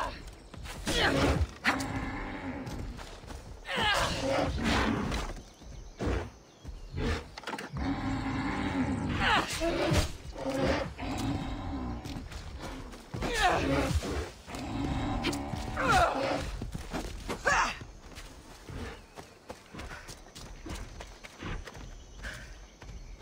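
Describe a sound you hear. A spear swishes and strikes with sharp blows.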